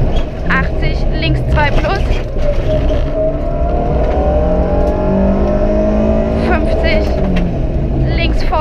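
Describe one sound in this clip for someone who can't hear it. A rally car engine roars loudly, rising and falling in pitch as it changes gear.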